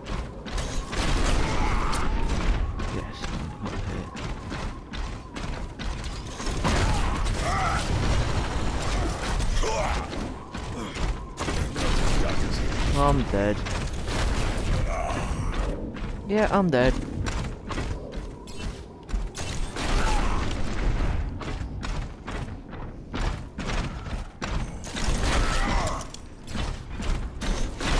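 A game weapon fires rapid bursts of shots.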